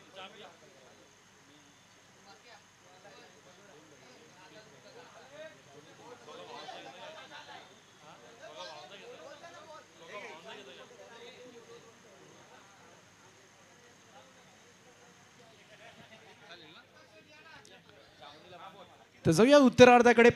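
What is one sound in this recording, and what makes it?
A crowd of people chatters faintly in the distance outdoors.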